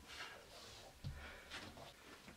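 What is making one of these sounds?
A man thumps on the floor.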